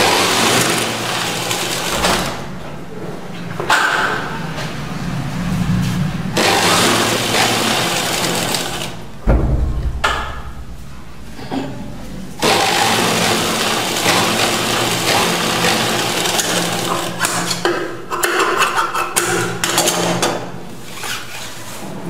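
A sewing machine stitches through fabric.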